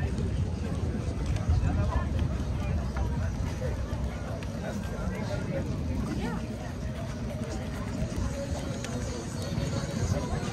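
People chat in the distance on a busy walkway.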